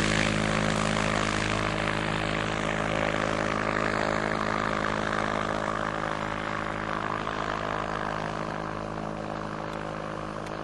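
A small aircraft engine drones steadily overhead.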